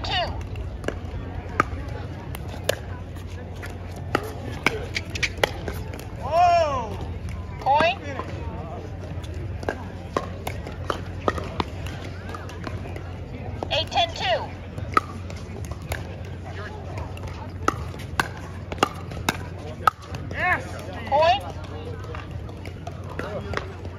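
Pickleball paddles pop sharply against a plastic ball in quick rallies.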